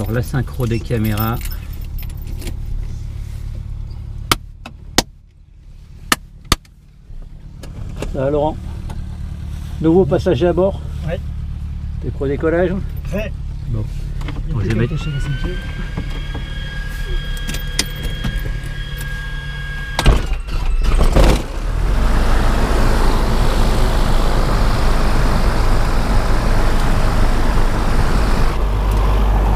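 An aircraft engine hums steadily and grows louder as it revs up.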